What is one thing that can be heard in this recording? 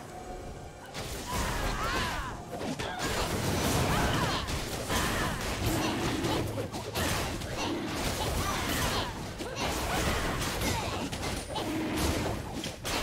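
Game spell effects and magic blasts crackle and boom in a fight.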